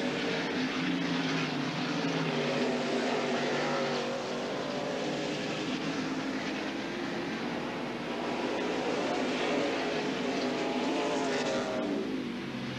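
Race car engines roar loudly as the cars speed past.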